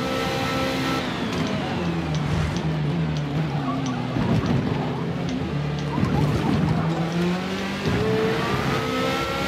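A racing car engine drops in pitch as the car brakes hard, then revs back up.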